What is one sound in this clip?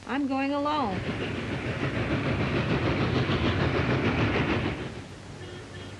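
A steam train rumbles and hisses loudly as it passes.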